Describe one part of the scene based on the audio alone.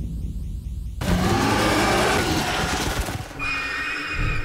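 A large creature lets out a loud, harsh roar.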